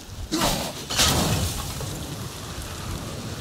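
A fire bursts into flames and crackles.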